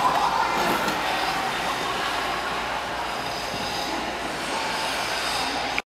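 Ice skate blades scrape and glide across ice in a large echoing hall.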